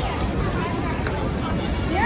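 A crowd of people talk in the distance outdoors.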